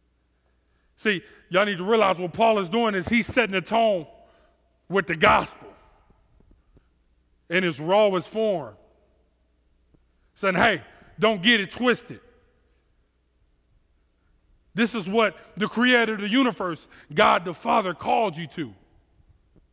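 A man speaks with animation through a headset microphone, in bursts with pauses.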